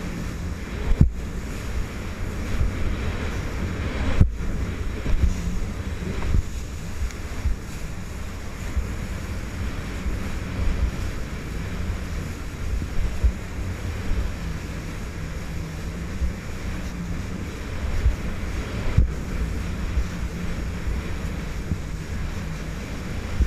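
Spray splashes and slaps as the hull hits the waves.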